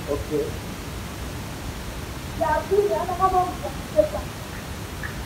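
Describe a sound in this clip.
A woman sings through a microphone and loudspeakers.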